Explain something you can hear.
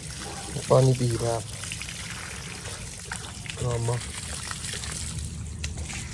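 Water splashes steadily from a hose.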